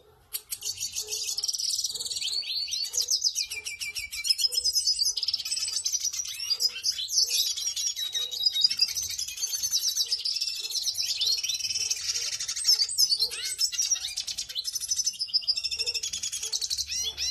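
Small birds chirp and twitter rapidly, close by.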